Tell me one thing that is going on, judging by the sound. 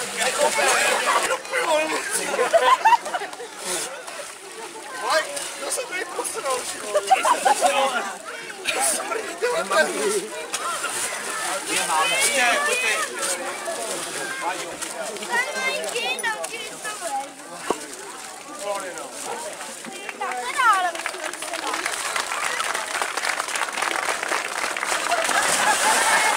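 A crowd of people chatters and shouts loudly outdoors.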